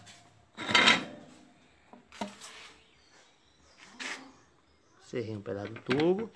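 Metal parts clink and scrape against each other.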